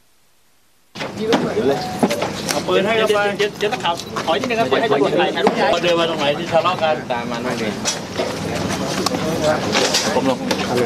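Several men talk at once close by, with animation.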